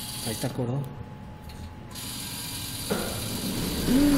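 A claw machine's motor whirs as the claw moves.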